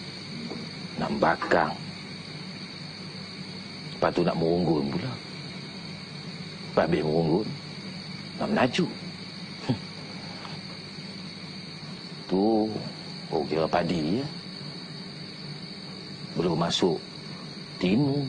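A middle-aged man speaks slowly and quietly, in short phrases with pauses.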